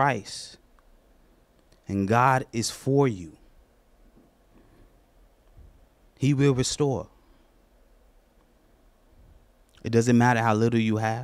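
A man speaks slowly and deliberately into a microphone, with long pauses.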